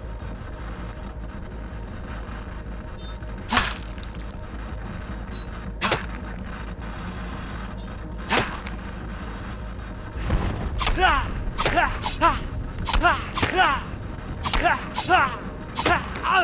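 A television hisses with static.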